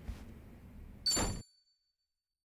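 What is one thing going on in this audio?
A soft chime rings as a menu opens.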